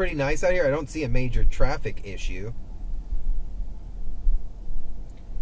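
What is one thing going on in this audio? A car engine hums low and steady from inside a moving car.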